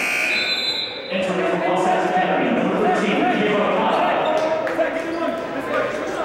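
A crowd murmurs in an echoing gym.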